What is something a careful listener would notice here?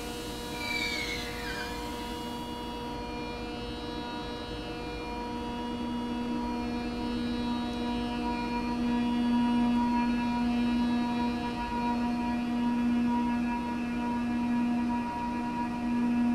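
An electric train hums with a steady whine that grows louder as it pulls away.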